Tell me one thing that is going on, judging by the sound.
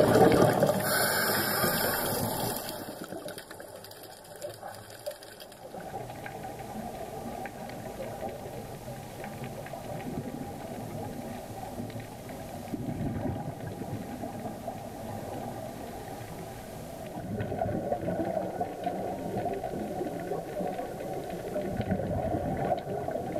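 Water surges and rumbles in a muffled underwater hush.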